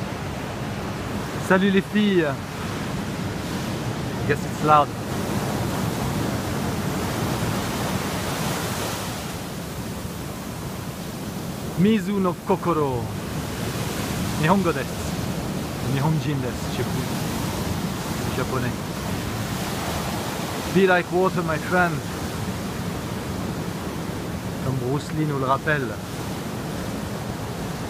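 Waves crash and roar steadily onto a shore.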